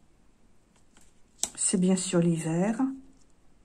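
A playing card slides softly onto a cloth-covered table.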